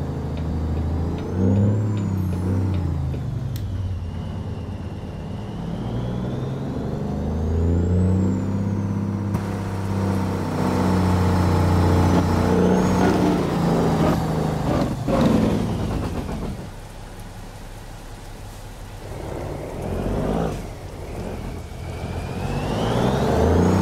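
A heavy truck engine rumbles deeply, its pitch rising and falling as it speeds up and shifts gears.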